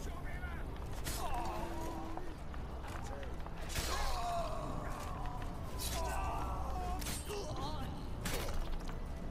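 Blades clash and strike in quick, sharp blows.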